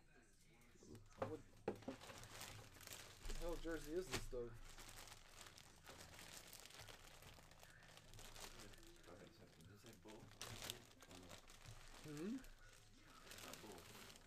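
Hands crinkle and tear open a plastic bag.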